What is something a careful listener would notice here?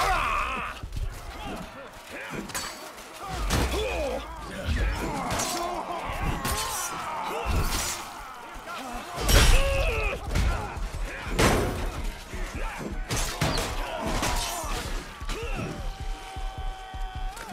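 Swords and metal weapons clash and strike repeatedly.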